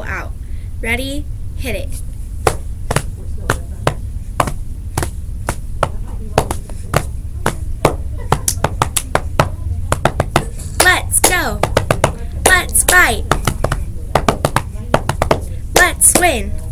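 A young woman speaks and laughs close by.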